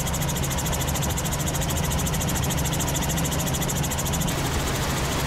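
A helicopter's rotor thumps rapidly and steadily with a loud engine whine.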